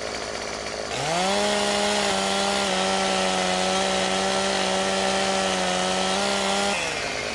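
A chainsaw engine revs up into a loud, high buzzing whine.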